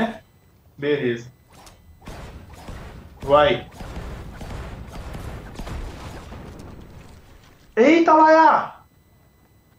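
A man exclaims loudly in short bursts, close to a microphone.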